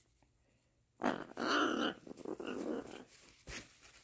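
Feathers rustle against a soft towel.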